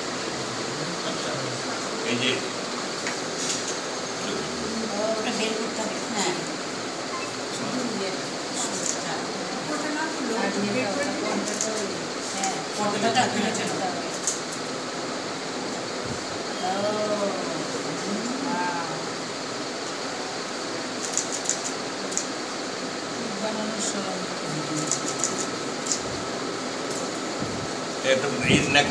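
An elderly man talks calmly nearby.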